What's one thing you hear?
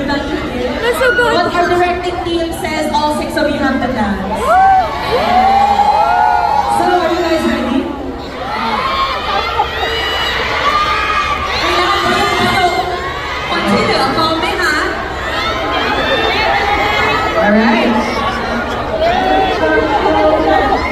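Young men speak with animation into microphones over loudspeakers in a large hall.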